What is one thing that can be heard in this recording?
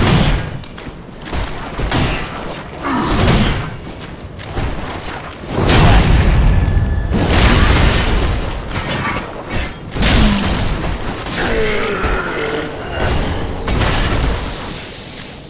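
Heavy metal weapons clash and thud in a fight.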